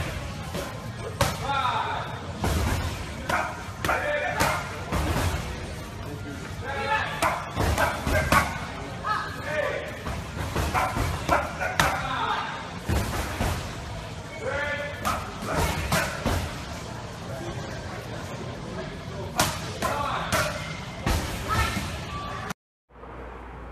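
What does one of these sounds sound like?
Punches thud sharply against padded mitts.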